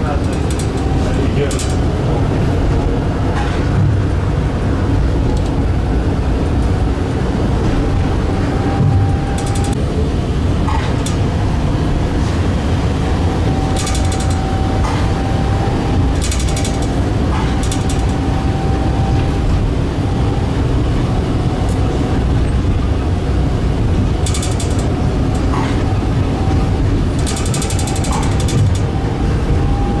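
Tram wheels squeal and clatter over the rail joints now and then.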